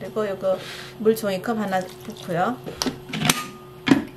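A plastic lid clicks onto a blender jar.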